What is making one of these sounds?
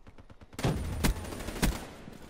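A rifle fires a shot with a sharp crack.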